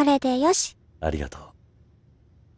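A man speaks briefly in a low, calm voice.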